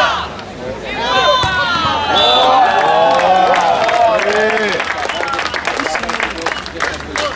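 A crowd cheers, claps and whistles outdoors.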